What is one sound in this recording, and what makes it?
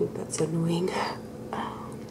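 A young woman speaks softly, close to a microphone.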